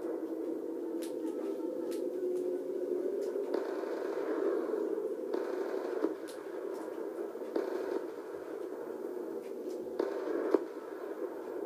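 Gunshots crackle in bursts from a small television speaker.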